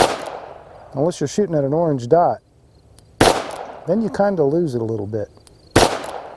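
A middle-aged man talks calmly between the shots.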